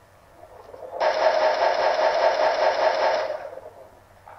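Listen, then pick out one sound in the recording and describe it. A gun turret fires a rapid burst of shots.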